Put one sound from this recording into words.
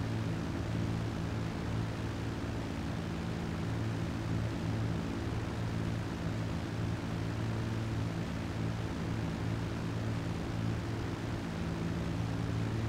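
Propeller engines of a large plane drone steadily nearby.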